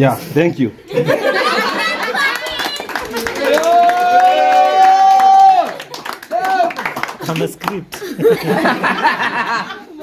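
A group of young people laugh loudly and cheer.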